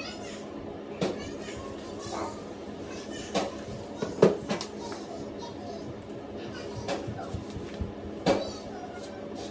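Hands knock and tap close by.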